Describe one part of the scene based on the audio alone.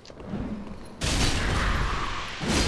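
A heavy sword clangs against metal.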